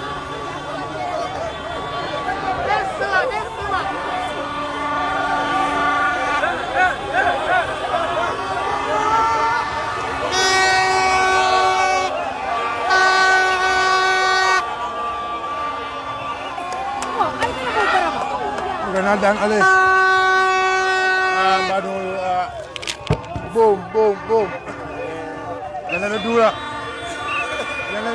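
A large crowd sings and cheers loudly outdoors.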